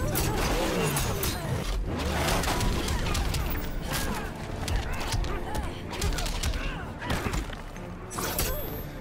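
Punches and kicks land with heavy thuds and whooshes in a fighting game.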